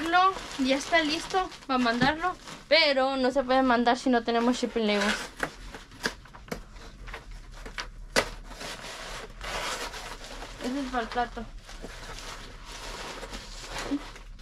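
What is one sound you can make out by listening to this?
Cardboard boxes rustle and thud as they are handled.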